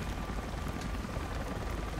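Water pours down and splashes.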